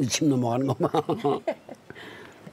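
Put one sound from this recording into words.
An elderly man laughs loudly up close.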